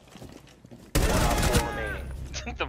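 A gunshot bursts out loudly in a game.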